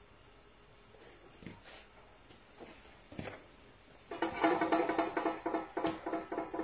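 A metal pot lid clanks and rattles as it is handled.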